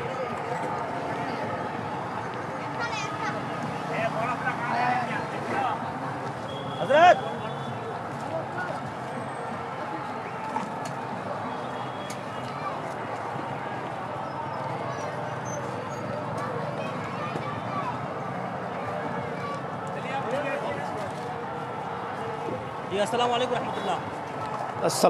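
Voices of a crowd chatter outdoors.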